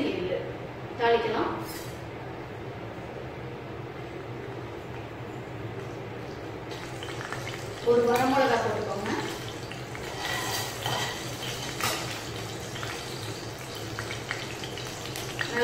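Seeds sizzle softly in hot oil.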